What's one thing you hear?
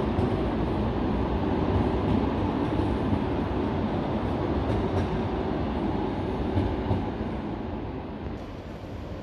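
A tram rumbles and rolls slowly past, echoing under a large roof.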